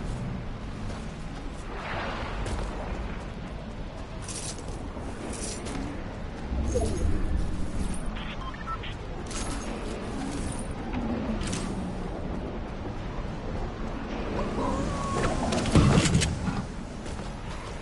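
Footsteps run over ground.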